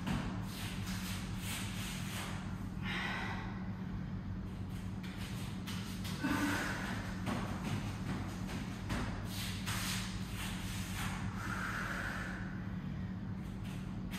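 Feet shuffle and thud softly on a foam floor mat.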